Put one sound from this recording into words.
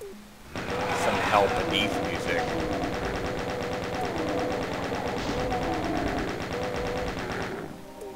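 A monster growls and screeches as shots hit it.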